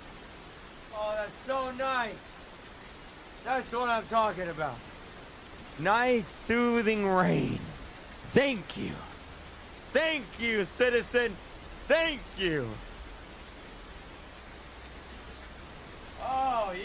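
A young man talks and exclaims with animation into a microphone close by.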